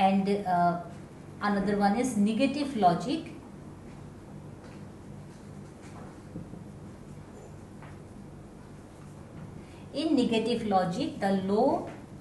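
A woman speaks calmly and clearly, as if teaching, close by.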